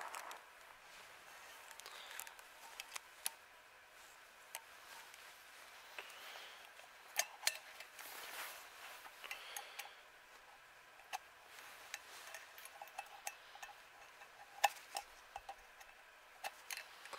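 Small plastic and metal parts click and tap.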